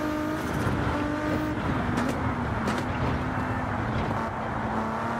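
A twin-turbo V6 race car engine roars at high revs.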